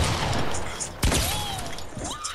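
A gunshot cracks loudly in a game.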